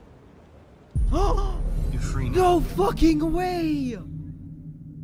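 A young man speaks calmly and closely.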